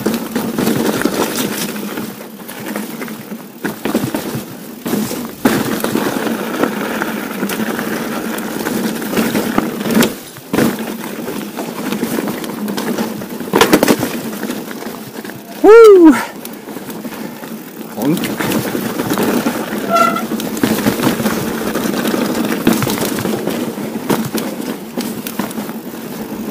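A bicycle frame rattles and clanks over bumps.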